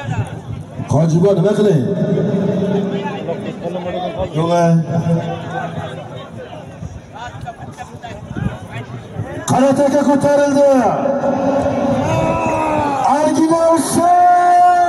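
Men shout loudly close by.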